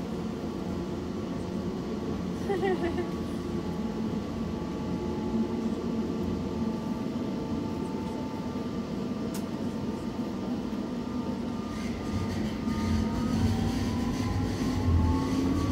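Train motors whine, rising in pitch as the train speeds up.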